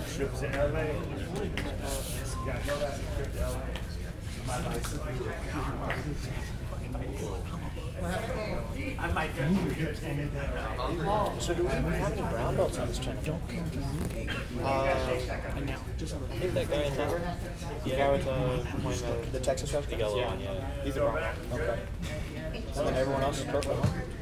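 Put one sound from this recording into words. Bodies shuffle and thump on a padded mat.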